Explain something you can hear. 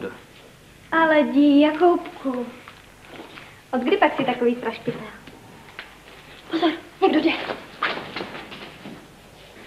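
A young woman speaks softly and warmly, close by.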